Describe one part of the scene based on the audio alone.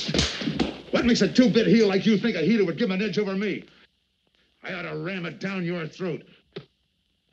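A man groans and gasps in pain.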